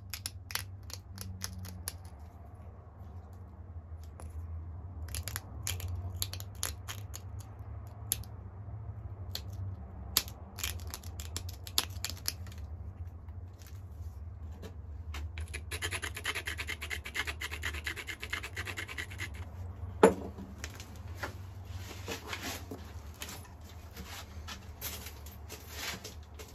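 Stone flakes click and snap as a tool presses off chips.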